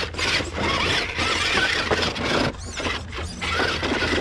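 Plastic wheels clatter and scrape on wooden boards.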